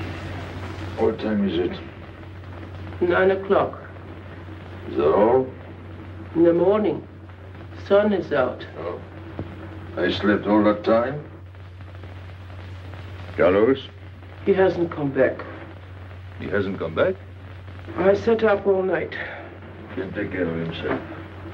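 A man speaks slowly and wearily, close by.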